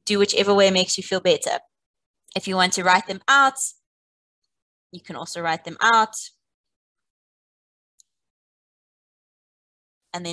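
A woman speaks calmly and clearly into a close microphone, with short pauses.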